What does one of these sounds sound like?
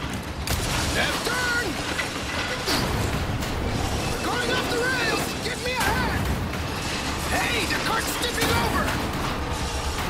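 Metal wheels screech and grind against the rails.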